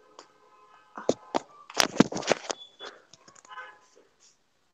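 A phone is knocked and rubbed as it is handled.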